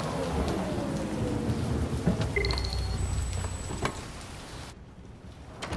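An electric vehicle hums low as it rolls slowly to a stop.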